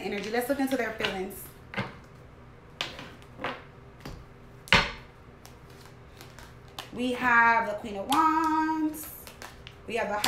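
Cards tap and shuffle in a woman's hands.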